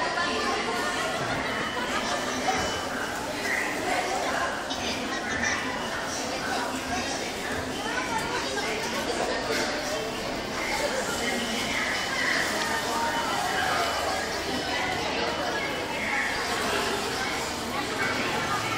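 Ride-on toy animals whir and roll across a hard floor.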